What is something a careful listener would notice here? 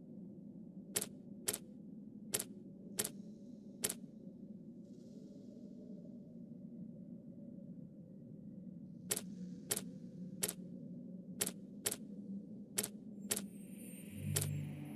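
Mechanical dials click sharply as they turn, one click at a time.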